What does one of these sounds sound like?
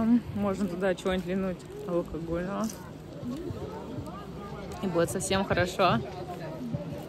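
A young woman talks with animation close to the microphone, outdoors.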